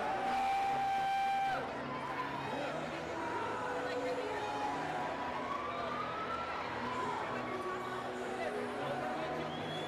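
A large crowd of young people chatters and calls out all at once in a big echoing hall.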